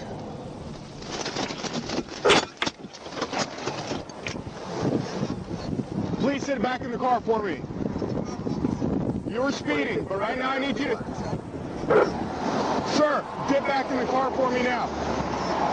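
Cars pass by on a highway.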